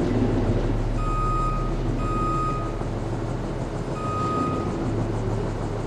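A warning alarm beeps in short, high tones.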